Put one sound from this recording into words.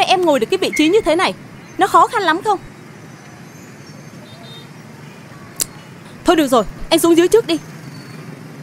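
A young woman speaks close by, upset and pleading.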